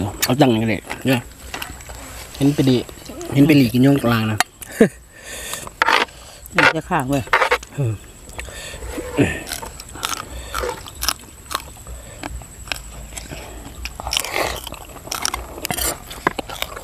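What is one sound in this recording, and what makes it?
Crunchy vegetables are bitten and chewed loudly close by.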